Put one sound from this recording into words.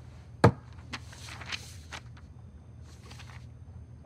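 Paper rustles as sheets are handled.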